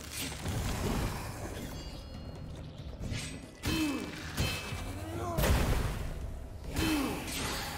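Blows land with sharp impacts.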